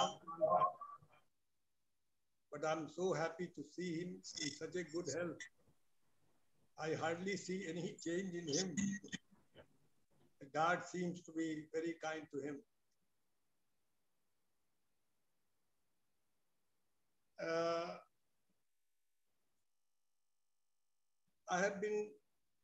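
A man speaks calmly through a microphone, with pauses.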